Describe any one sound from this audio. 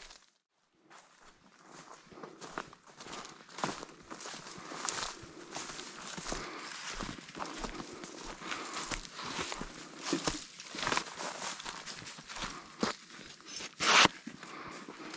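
Footsteps crunch on dry ground and grass.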